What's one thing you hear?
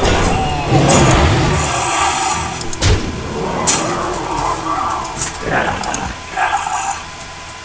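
Fantasy game sound effects whoosh and thud as cards clash.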